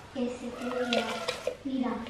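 Lettuce leaves rustle as they drop into a wooden bowl.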